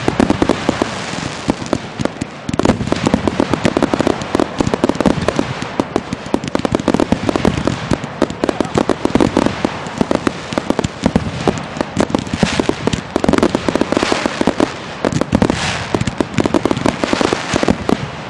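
Fireworks hiss and fizz as they burst.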